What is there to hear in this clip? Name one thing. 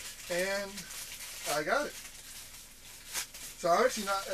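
A plastic wrapper crinkles in a man's hands.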